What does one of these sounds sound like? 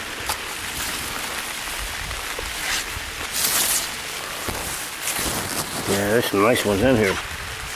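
Leaves rustle close by.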